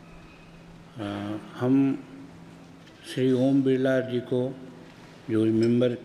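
An elderly man reads aloud through a microphone.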